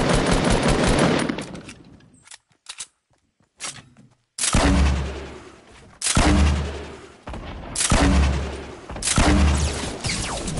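Gunshots boom in loud, quick bursts.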